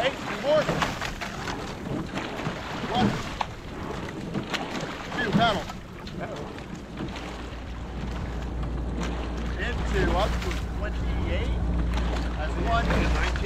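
Oars splash and churn through water in a steady rowing rhythm.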